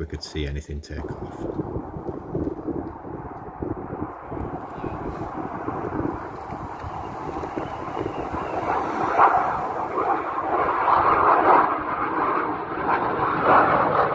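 A jet plane roars through the sky, growing steadily louder.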